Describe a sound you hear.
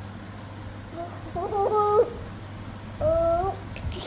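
A toddler babbles and squeals happily up close.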